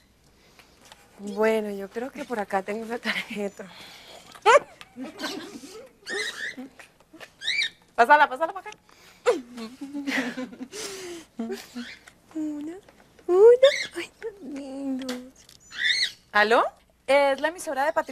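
A young woman talks cheerfully.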